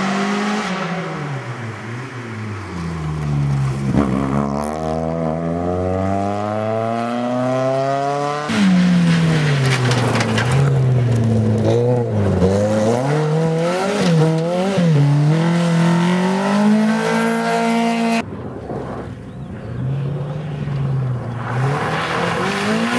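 A rally car's engine revs hard and roars past, its pitch rising and falling through the gears.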